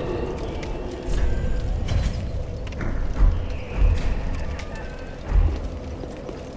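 Short clicks and chimes sound as menu choices are made.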